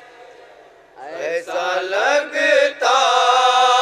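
A young man sings loudly and with feeling into a microphone.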